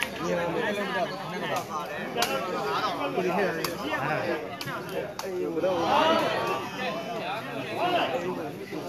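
A crowd of men shout and cheer loudly outdoors.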